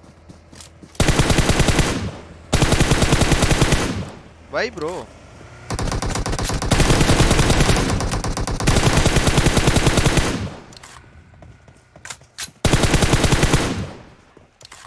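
A rifle fires rapid automatic bursts close by.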